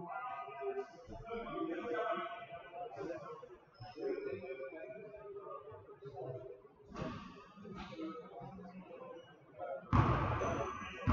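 Basketballs bounce on a wooden floor with sharp thuds.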